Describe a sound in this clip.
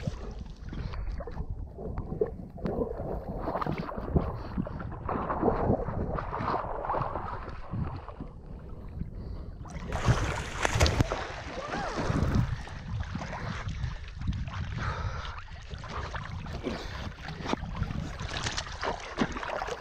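Water laps and gurgles right beside the microphone.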